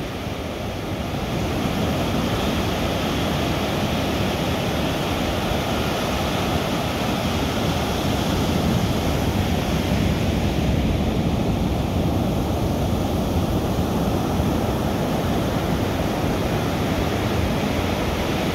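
Waves crash and roll onto the shore nearby.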